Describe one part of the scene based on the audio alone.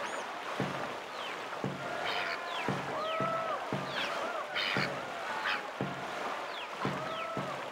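Paddles splash into water in a steady rhythm.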